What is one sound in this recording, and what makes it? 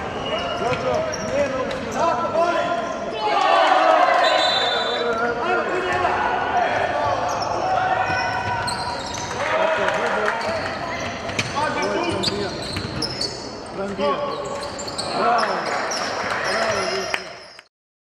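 Players shout to each other across the court.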